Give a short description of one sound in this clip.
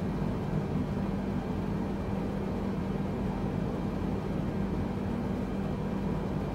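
Jet engines drone with a steady, low rumble.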